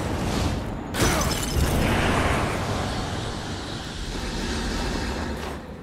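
A magical energy blast bursts with a loud roaring whoosh.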